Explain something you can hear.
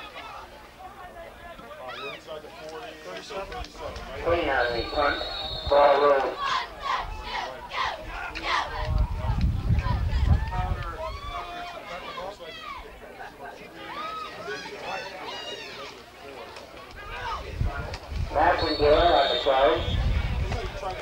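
Spectators cheer and shout nearby outdoors.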